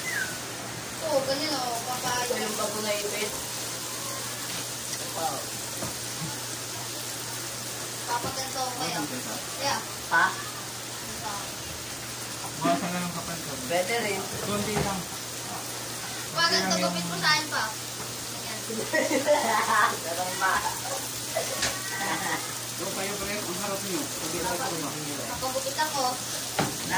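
A teenage boy talks nearby with animation.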